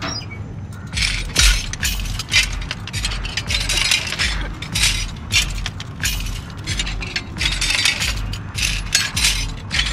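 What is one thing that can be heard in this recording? Small objects rattle and clatter as a box is rummaged through.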